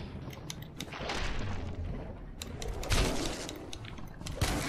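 A large beast snarls and roars close by.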